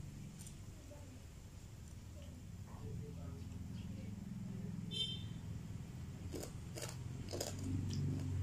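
Crispy food crackles as fingers tear it.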